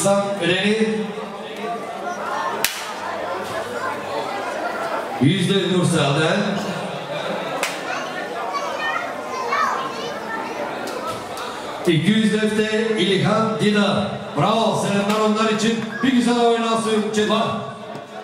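A man speaks loudly through a microphone and loudspeakers, with animation, in a large echoing hall.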